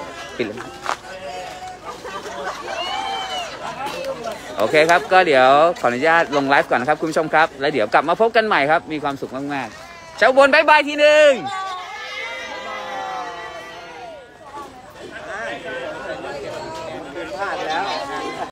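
Several men and women talk and call out cheerfully nearby.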